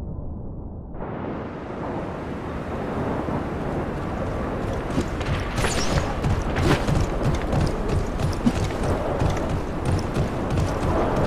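Footsteps run quickly over a hard floor.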